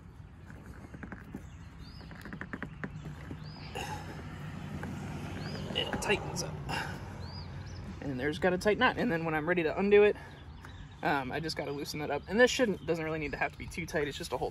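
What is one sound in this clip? A cord rubs and clicks against a car door frame.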